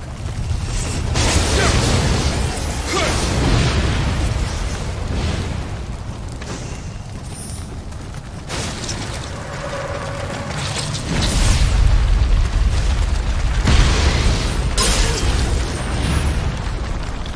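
A sword slashes and clangs in a fight.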